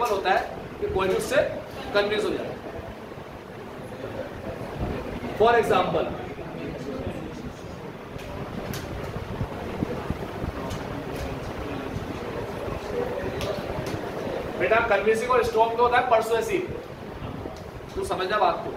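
A young man speaks in a lecturing tone, close by, with pauses.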